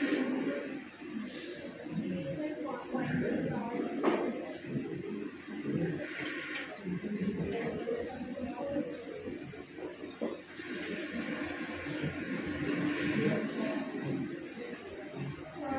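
A young woman speaks steadily into a microphone, heard through a loudspeaker in an echoing room.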